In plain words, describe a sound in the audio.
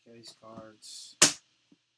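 Metal latches snap closed with a loud click.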